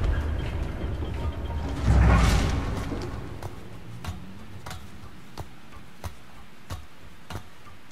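Wooden ladder rungs creak as a boy climbs.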